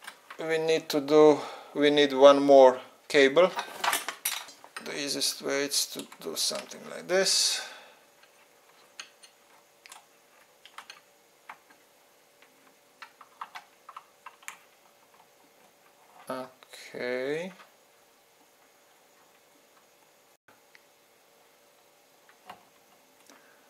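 Plugs click into sockets.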